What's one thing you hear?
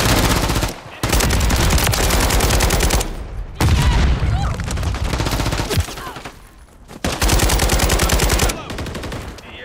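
A rifle fires rapid bursts of gunshots close by.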